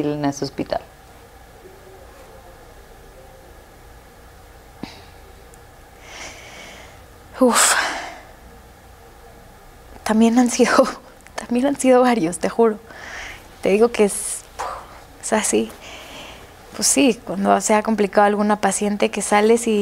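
A young woman speaks calmly and with animation, close to a microphone.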